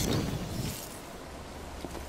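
Sparks crackle and hiss.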